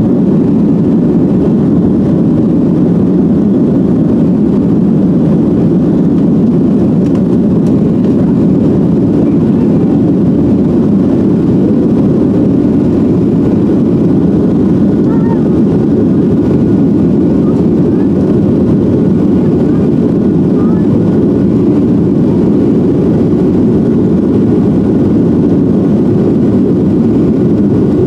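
Jet engines roar loudly and steadily as an airliner takes off.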